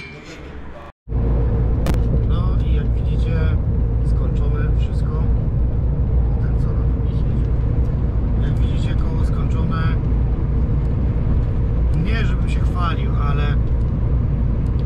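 A truck engine rumbles steadily on the road.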